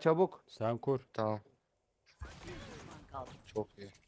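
A gun fires a short burst.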